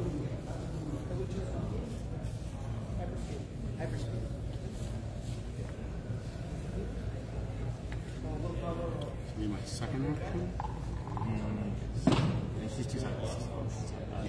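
Game pieces tap on a board.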